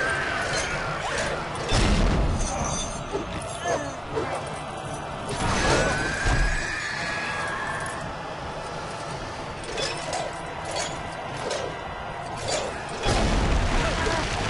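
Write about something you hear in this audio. Weapons clash and crash over and over.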